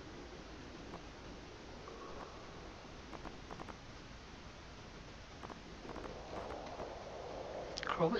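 Soft game menu clicks tick as a list scrolls.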